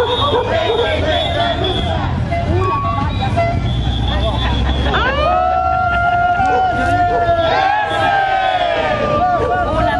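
A crowd of marching men and women chants and shouts loudly outdoors.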